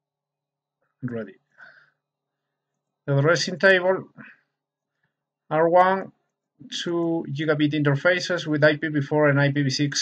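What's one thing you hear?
A man explains calmly, heard close through a microphone.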